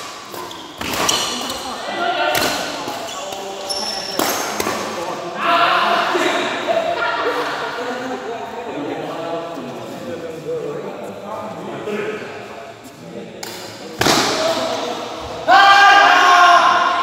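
Men talk and call out across the court.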